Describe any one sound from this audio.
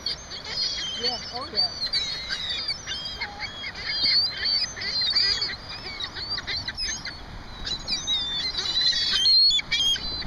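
Seagulls cry and squawk nearby.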